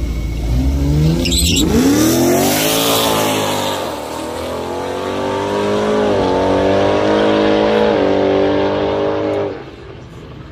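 Racing cars launch and roar off, their engines revving up through the gears.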